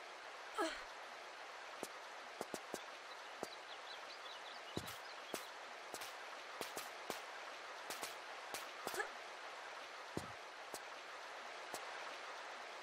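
Water rushes and gurgles steadily.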